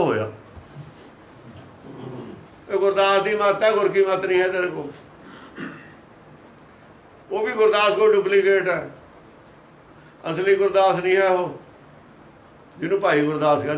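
An elderly man speaks calmly close to a microphone, in bursts with pauses.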